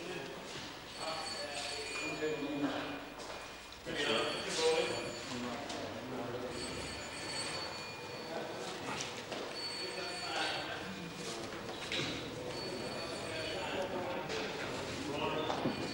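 Clothing fabric rustles as a man pulls a garment on.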